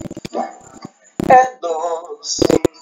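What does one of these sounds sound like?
A man sings over an online call.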